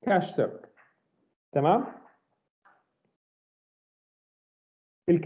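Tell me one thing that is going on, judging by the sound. A man speaks calmly over an online call, in short bursts.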